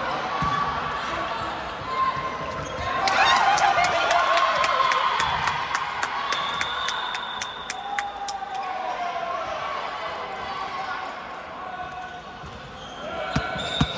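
Young women call out and cheer in a large echoing hall.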